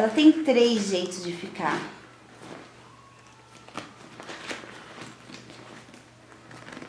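Hands rustle and handle a fabric bag.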